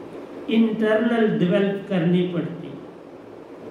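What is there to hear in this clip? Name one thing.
An elderly woman speaks calmly into a microphone.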